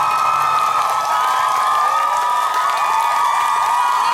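A young man claps his hands.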